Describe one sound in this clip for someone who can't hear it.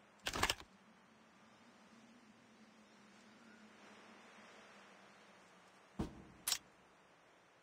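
Short metallic clacks sound as parts snap onto a rifle.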